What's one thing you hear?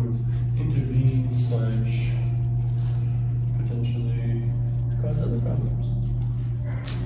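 A man speaks to dogs in a calm, encouraging voice in an echoing room.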